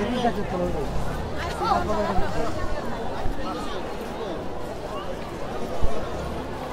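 A crowd of people talk and shout nearby outdoors.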